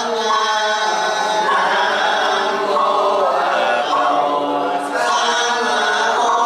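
Several men chant together in unison.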